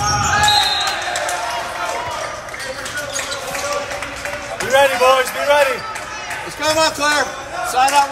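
Spectators cheer and shout after a point.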